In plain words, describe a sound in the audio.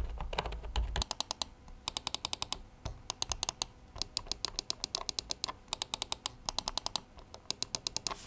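A mouse button clicks rapidly in quick bursts.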